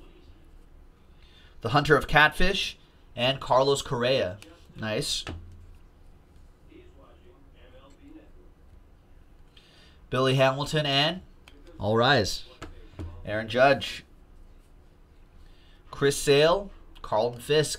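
Cardboard cards rustle and slide against each other in hands.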